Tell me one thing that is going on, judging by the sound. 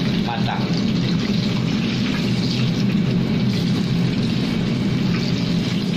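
Hot oil sizzles and bubbles loudly as food fries.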